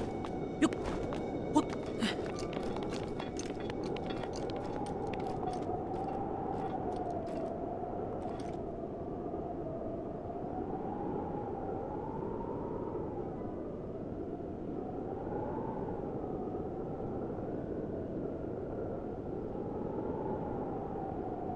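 Wind howls steadily with a low, wavering moan.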